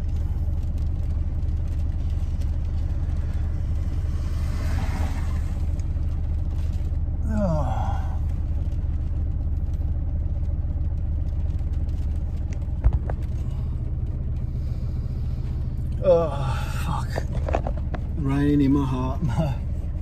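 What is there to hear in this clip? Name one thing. A car engine hums steadily inside a moving vehicle.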